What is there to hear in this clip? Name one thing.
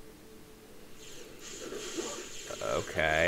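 Electric bolts crackle and zap in quick bursts.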